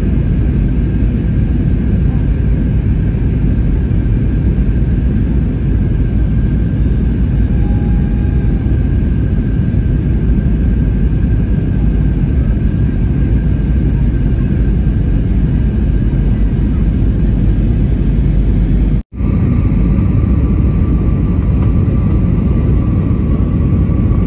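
A jet engine roars steadily in a plane's cabin.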